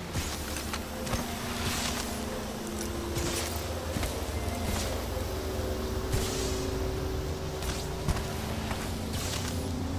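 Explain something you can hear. Footsteps run over dry ground in a game.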